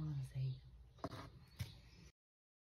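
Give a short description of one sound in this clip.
A plastic tray knocks lightly as hands handle it.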